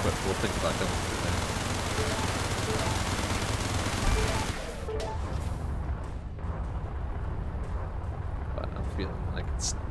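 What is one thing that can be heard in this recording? A spaceship engine roars steadily in a video game.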